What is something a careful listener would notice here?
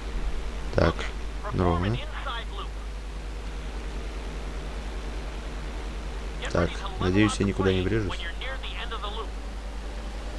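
A young man talks into a close microphone in short, lively bursts.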